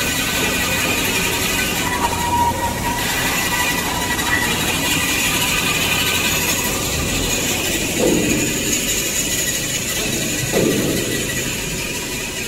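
Machinery hums and whirs steadily.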